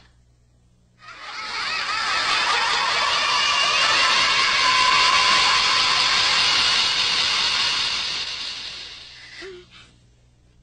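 A crowd of children cheers and shouts loudly.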